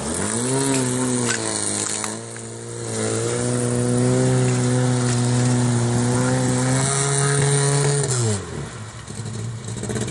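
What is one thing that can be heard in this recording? Muddy water splashes around a car.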